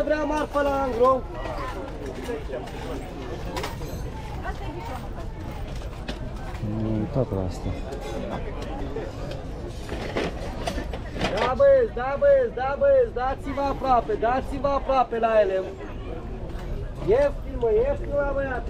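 People chatter in the background outdoors.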